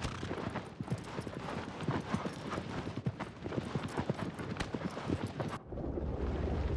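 A horse gallops, its hooves thudding quickly on soft ground.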